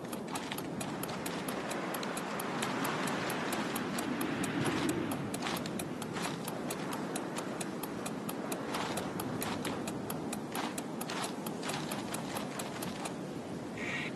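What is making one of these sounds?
Small paws patter quickly and steadily over the ground.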